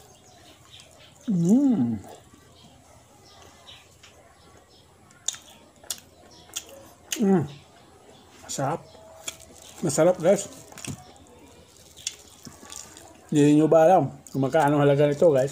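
A man chews and smacks his lips while eating.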